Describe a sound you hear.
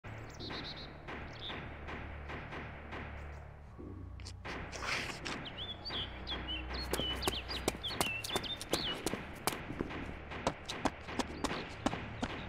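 Footsteps tread steadily on hard stone.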